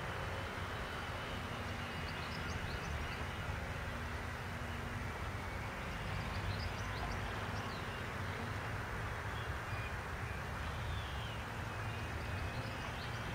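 Wind blows steadily outdoors, rumbling into a microphone.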